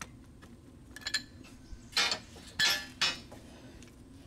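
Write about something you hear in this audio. A metal wrench clanks against a pipe fitting.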